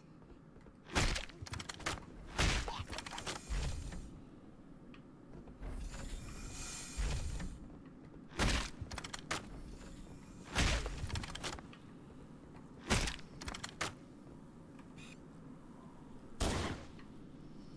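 Gunshots crack in short, quick bursts.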